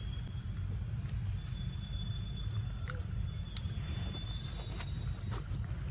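A monkey bites and chews on a fruit with wet crunching.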